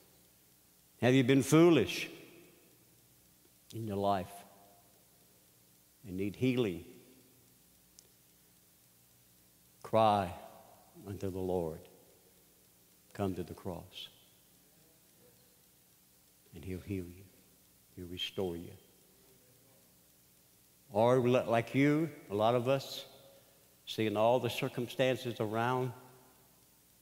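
An older man speaks slowly and deliberately through a microphone, with long pauses.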